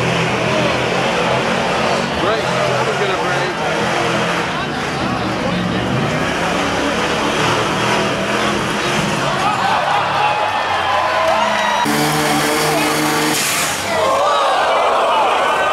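A diesel truck engine roars loudly under heavy strain.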